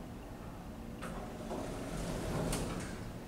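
Elevator doors slide open.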